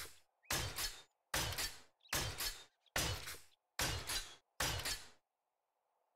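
A heavy tool strikes a wooden door again and again.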